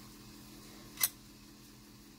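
A metal cutter taps against a hard surface.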